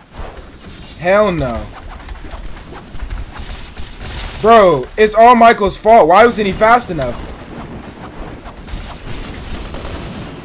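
Swords swish and clash in quick bursts.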